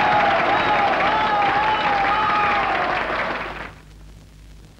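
A man calls out in a long, loud, wavering cry.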